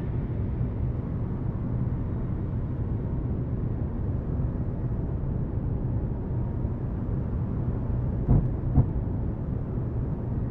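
A spacecraft's engines rumble low and steadily.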